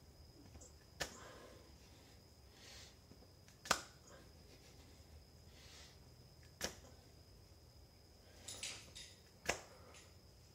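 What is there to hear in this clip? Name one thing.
Hands slap down hard on a floor at a steady pace.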